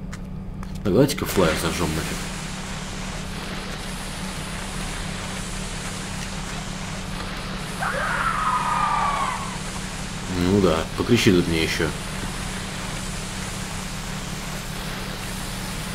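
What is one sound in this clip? A torch flame crackles and hisses softly.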